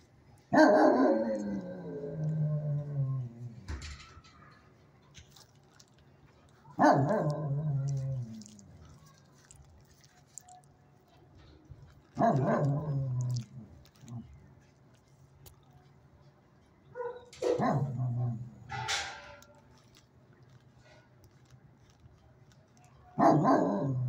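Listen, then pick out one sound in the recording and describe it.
A dog howls in long, falling cries, again and again.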